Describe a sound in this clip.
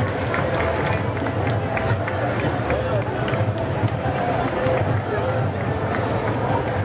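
A large outdoor crowd chatters and murmurs all around.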